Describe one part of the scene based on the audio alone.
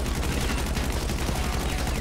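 Gunshots fire from a game.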